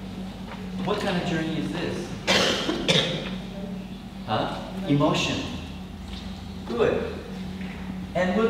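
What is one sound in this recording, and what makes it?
A middle-aged man speaks with animation to a room, a little distant.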